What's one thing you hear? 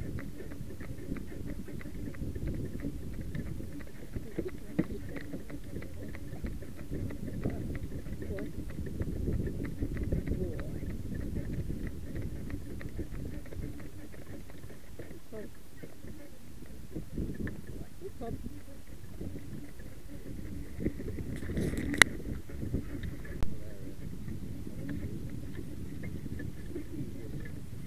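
Carriage wheels rumble and rattle over the ground.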